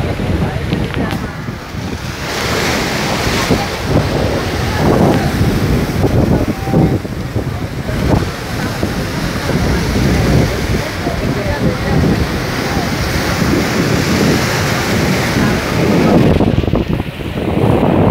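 Waves crash and wash over rocks, loud and close.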